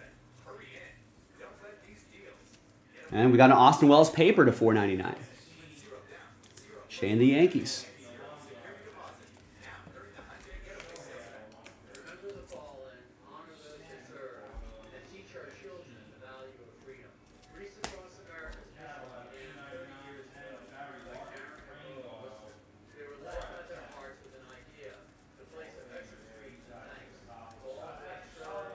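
Trading cards riffle and slide against each other.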